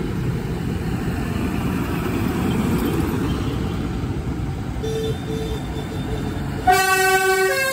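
A tractor engine rumbles loudly close by.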